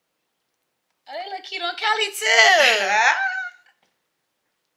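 A young woman laughs and squeals excitedly.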